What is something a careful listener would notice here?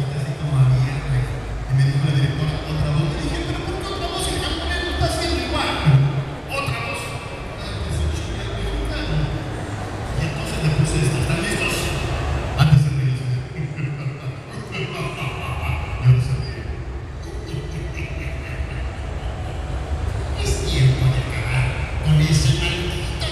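A young man sings loudly through a loudspeaker in a large echoing hall.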